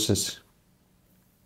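A young man speaks briefly and close up, through a microphone.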